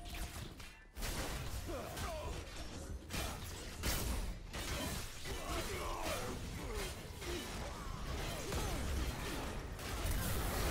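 Gunfire and blasts crash in a fast fight.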